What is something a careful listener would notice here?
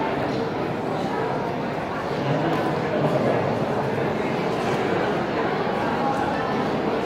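A crowd of young people murmurs and chatters in a large echoing hall.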